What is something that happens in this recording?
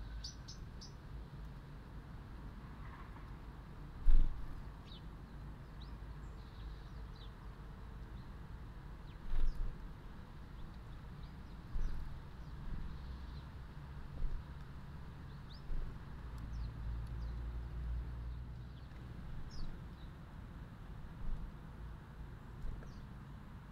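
Small birds chirp in short, high calls outdoors.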